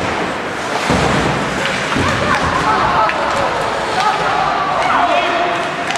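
Young players shout and call out from the bench.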